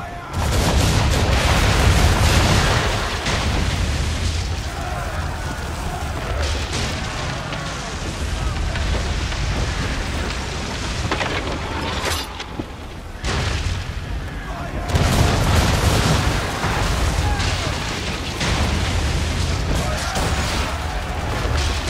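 Cannons boom in loud, rumbling volleys.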